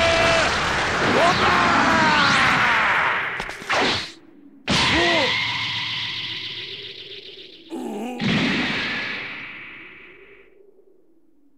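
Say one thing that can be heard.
A blast rumbles and crashes.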